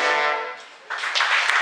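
A band plays a final sustained chord in an echoing hall.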